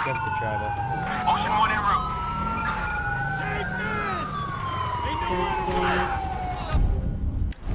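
A police siren wails with a rising and falling pitch.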